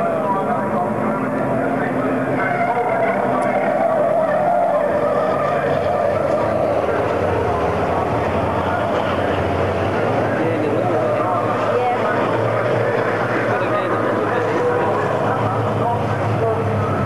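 Diesel racing trucks roar past at full throttle.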